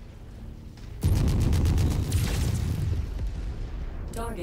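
A heavy weapon fires a rapid burst with a deep booming rumble.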